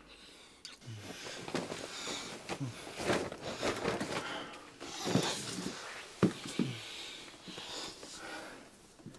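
A man and a woman breathe heavily.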